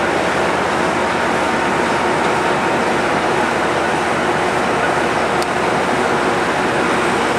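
A diesel locomotive engine rumbles loudly and steadily close by.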